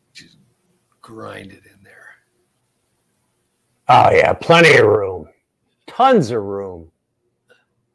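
An elderly man talks with animation over an online call.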